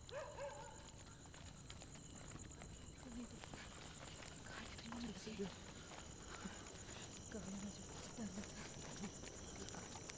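Footsteps scuff slowly on a paved road.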